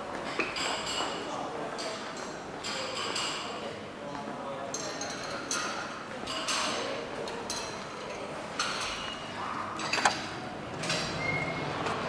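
Footsteps tap steadily on a hard floor and stairs.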